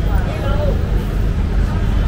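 A metal spoon scrapes across a hot griddle.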